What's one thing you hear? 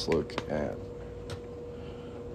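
A metal ring taps lightly on a hard surface.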